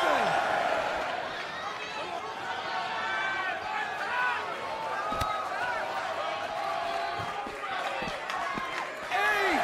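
A large crowd cheers and shouts in a big arena.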